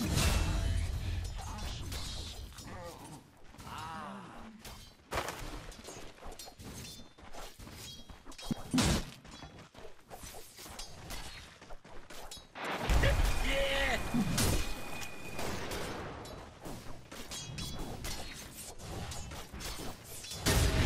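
Game weapons strike with sharp hits.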